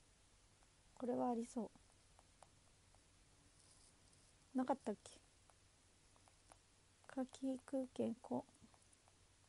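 A young woman speaks softly in short bursts close to a microphone.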